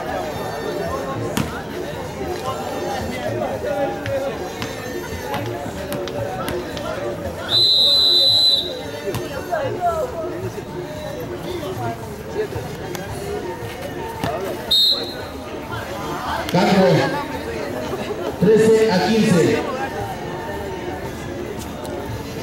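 A crowd of young men chatters and calls out outdoors.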